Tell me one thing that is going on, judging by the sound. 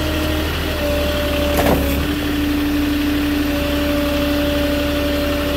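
A forklift engine hums steadily close by.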